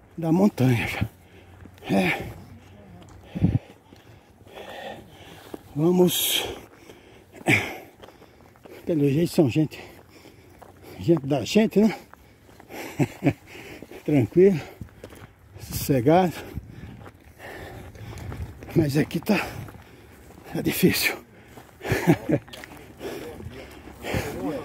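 A man talks close by with animation, outdoors.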